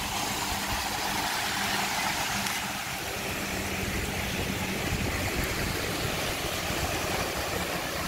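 Small waves wash and break on a sandy shore.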